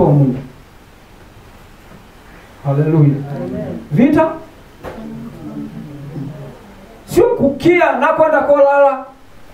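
A middle-aged man speaks with animation into a headset microphone, in pauses.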